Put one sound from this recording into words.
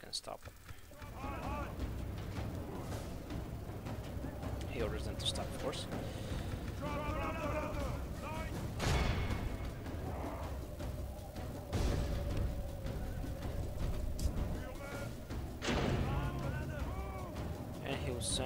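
A battle rumbles on with a low, steady roar and clashing weapons.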